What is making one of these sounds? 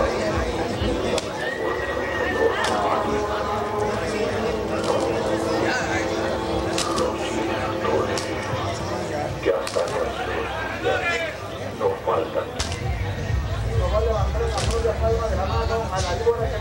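Roosters flap their wings and scuffle on a dirt floor.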